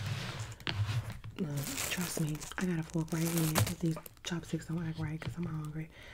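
Plastic crinkles close to a microphone.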